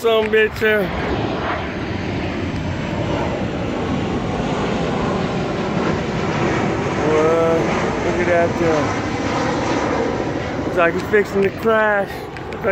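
A jet airliner roars loudly overhead.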